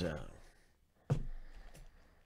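A cardboard box is set down on a table with a soft thump.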